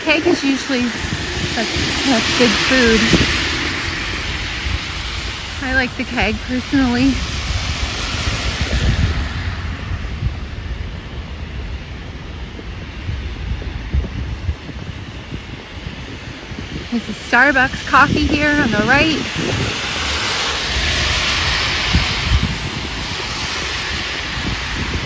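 Car tyres hiss past on a wet road.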